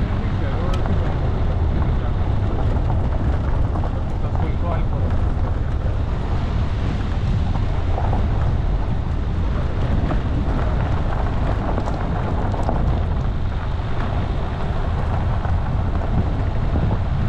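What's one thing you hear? A vehicle engine rumbles steadily at low speed.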